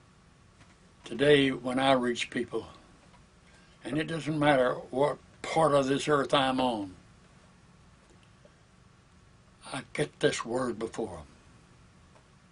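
An elderly man speaks calmly and slowly, close to a microphone, with long pauses.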